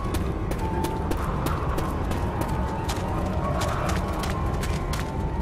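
Quick footsteps tap steadily on the ground.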